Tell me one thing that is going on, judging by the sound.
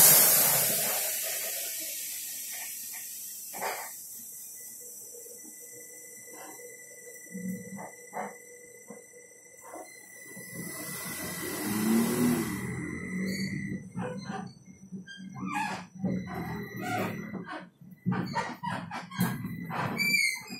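Loose fittings rattle and knock inside a moving bus.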